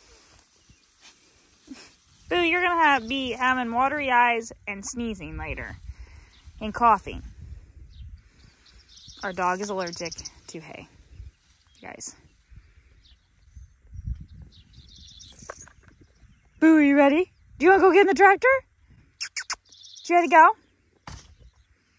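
A dog rustles through tall grass.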